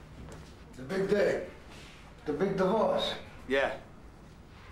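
A younger man answers nearby, calmly.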